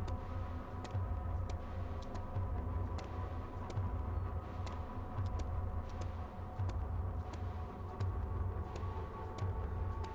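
Footsteps tread steadily across grass.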